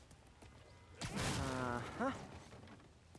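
A heavy crate crashes down and breaks apart.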